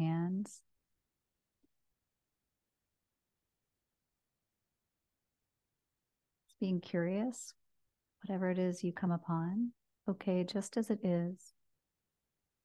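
A woman speaks softly and calmly into a close microphone, with long pauses.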